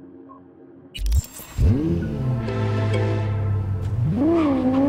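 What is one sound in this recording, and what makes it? A car engine starts with a rumble.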